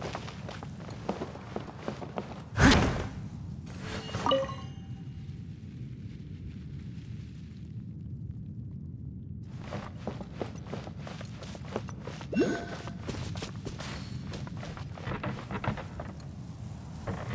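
Footsteps patter quickly across rock and wooden planks.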